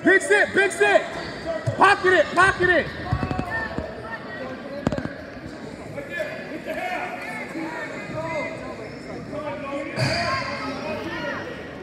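Men shout loudly from the sidelines in a large echoing gym.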